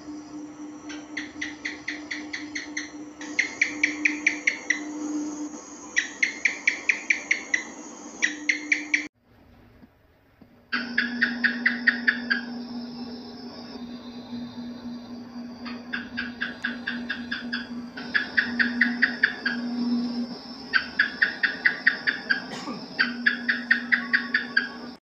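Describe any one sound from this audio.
A gecko calls with rapid bursts of sharp chirps.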